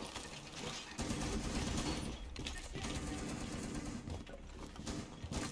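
Debris clatters as a wall is shot apart.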